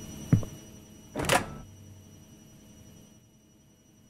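A microwave door clicks open.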